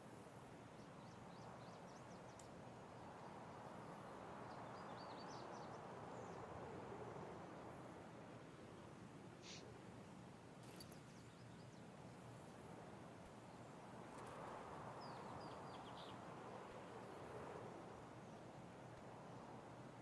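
Wind blows steadily through trees outdoors.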